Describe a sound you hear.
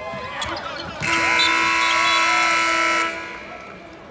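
A loud arena buzzer sounds steadily.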